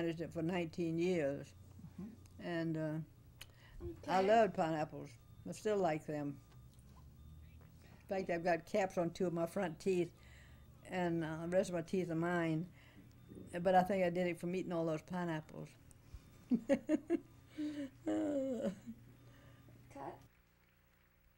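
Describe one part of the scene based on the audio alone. An elderly woman speaks calmly and close up.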